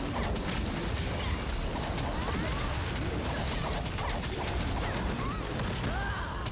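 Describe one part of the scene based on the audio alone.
Heavy blows thud against a huge beast.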